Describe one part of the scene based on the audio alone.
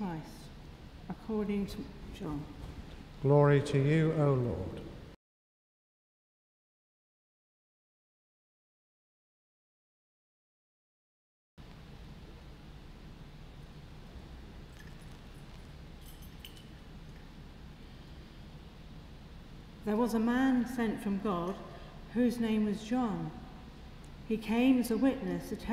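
A middle-aged woman reads aloud calmly through a microphone in a large echoing hall.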